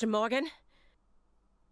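A young woman speaks questioningly.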